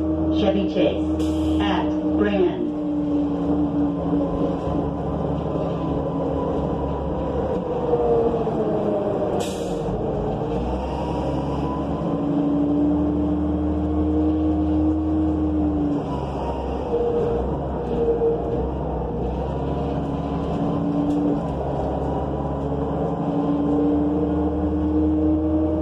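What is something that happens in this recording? A bus interior rattles and creaks over bumps.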